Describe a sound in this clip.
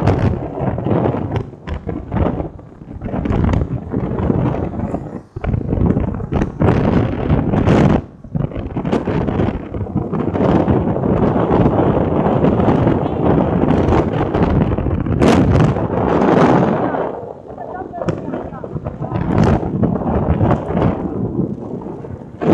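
Wind roars and buffets loudly against a microphone on a moving vehicle.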